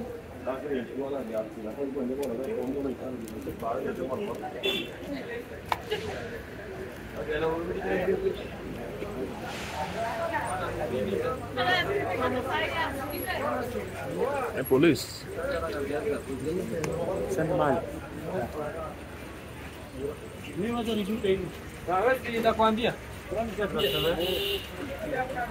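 Men talk nearby on a busy street.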